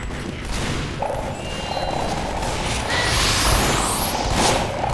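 A flamethrower roars with a loud rushing hiss.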